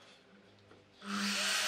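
A power saw whirs loudly as its motor starts up.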